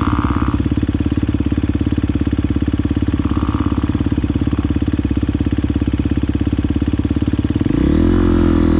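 A motorbike engine chugs steadily nearby.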